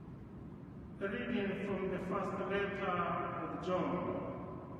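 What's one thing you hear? A man sings slowly through a microphone in a large echoing hall.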